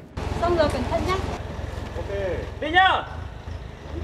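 A young woman laughs and talks with animation close by.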